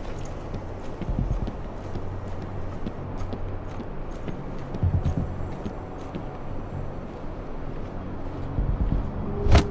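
Soft footsteps shuffle quietly over a concrete floor.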